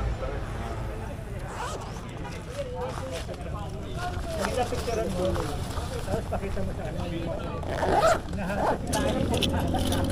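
Hands rustle and click while handling a bag's fastenings.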